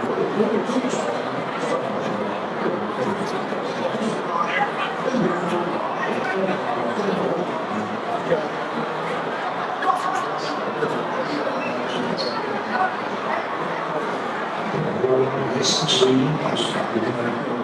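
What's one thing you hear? A large crowd chatters outdoors all around.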